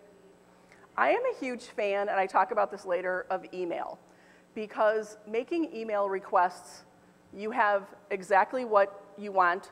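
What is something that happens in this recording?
A woman speaks clearly and calmly close to a microphone.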